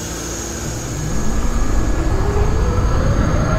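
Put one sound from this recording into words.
A train's electric motor whines, rising in pitch as the train pulls away.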